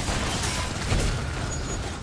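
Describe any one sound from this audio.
Magic blasts crackle and burst in a fast game battle.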